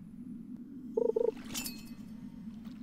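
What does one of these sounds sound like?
A short bright chime rings as a fish bites.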